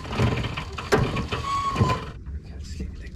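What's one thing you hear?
A winch clicks and ratchets as it is cranked.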